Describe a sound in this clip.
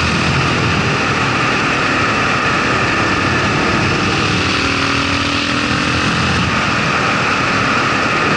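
A single-cylinder dual-sport motorcycle cruises along a winding road.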